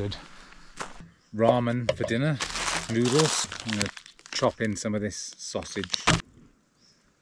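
An older man speaks calmly, close by.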